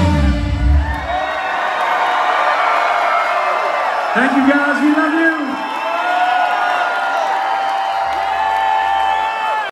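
A live band plays loudly through big loudspeakers in a large echoing hall.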